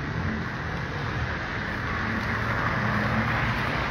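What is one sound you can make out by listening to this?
A car drives past nearby.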